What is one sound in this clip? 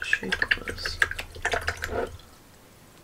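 A paintbrush swishes in a jar of water.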